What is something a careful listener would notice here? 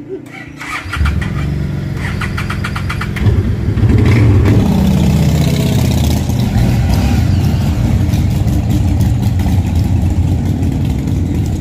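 A motorcycle engine starts and rumbles loudly, revving up and down.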